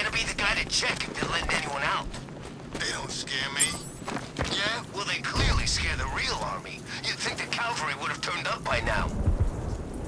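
A man's gruff voice talks nervously.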